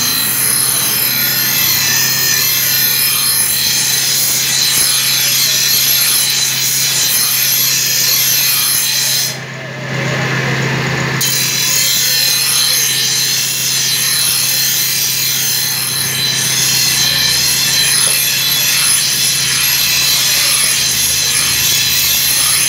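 A grinding wheel motor hums steadily.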